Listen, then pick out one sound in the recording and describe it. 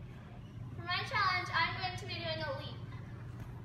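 A young girl speaks calmly nearby.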